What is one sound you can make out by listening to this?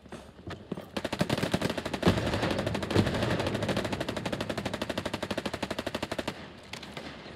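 A submachine gun fires in rapid bursts close by.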